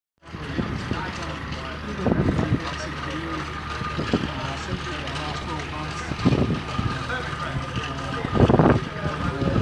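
A pickup truck engine runs.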